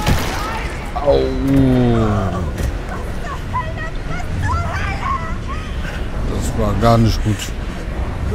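A young woman screams and shouts in shock.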